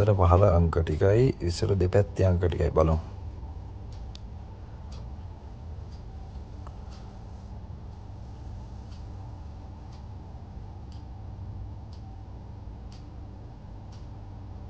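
A roulette ball rolls and rattles around a spinning wheel.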